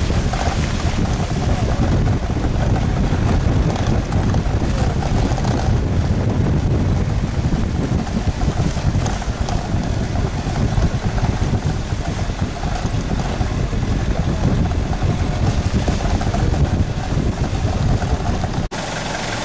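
A vehicle body rattles and jolts over a bumpy dirt track.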